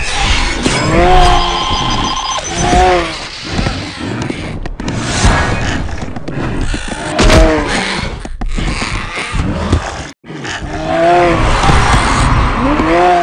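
A monster lets out a deep, growling roar.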